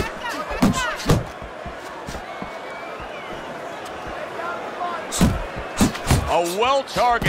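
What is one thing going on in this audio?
Boxing gloves thump hard against a body.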